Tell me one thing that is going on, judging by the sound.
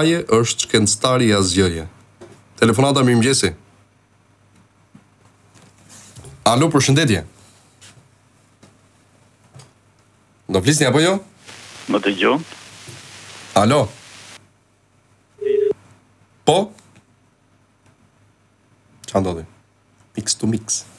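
A man speaks with animation, close to a microphone, with pauses in between.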